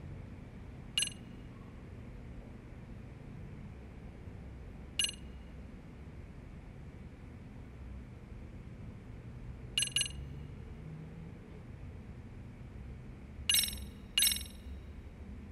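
Short bright chimes ring out now and then.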